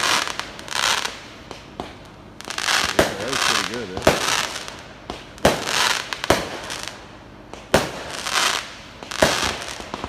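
Fireworks crackle and fizz as sparks burst.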